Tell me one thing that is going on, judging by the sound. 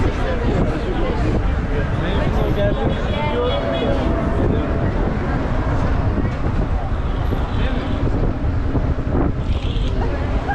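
Cars drive past.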